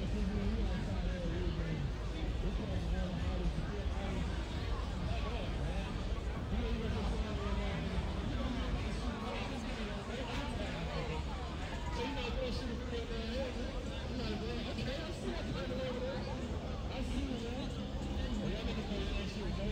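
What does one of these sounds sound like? A crowd chatters and calls out outdoors on a busy street.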